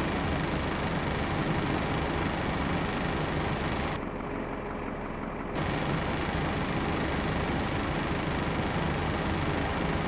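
A steady low hum of an aircraft's systems fills a cockpit.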